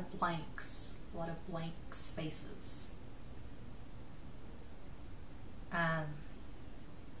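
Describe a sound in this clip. A woman speaks quietly and close by, in short phrases with pauses.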